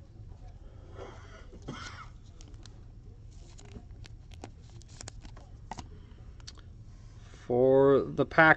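Cards rustle and slide against each other in hands.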